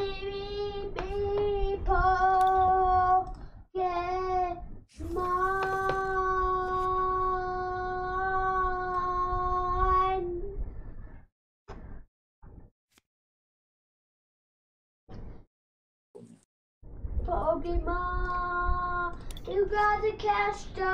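A man sings loud, drawn-out notes close to a microphone.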